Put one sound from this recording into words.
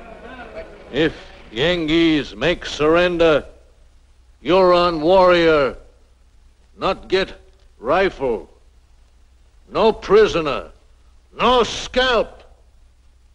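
A man shouts loudly to a crowd outdoors at night.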